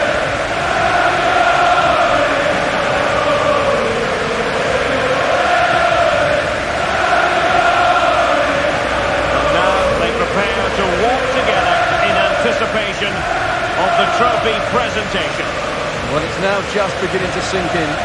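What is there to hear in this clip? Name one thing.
A large stadium crowd chants and sings loudly and steadily.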